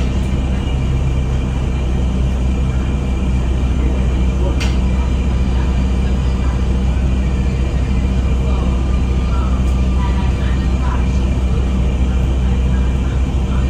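The bus rattles and creaks as it moves.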